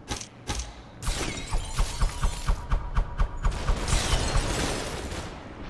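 Guns fire in rapid, sharp bursts.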